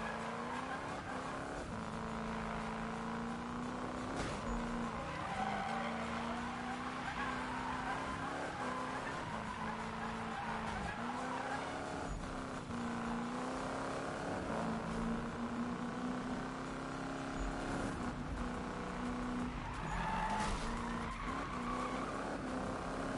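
A racing car engine roars steadily, shifting gears as it speeds up.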